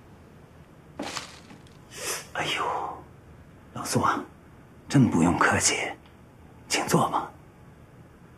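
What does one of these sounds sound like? A middle-aged man speaks warmly and close by.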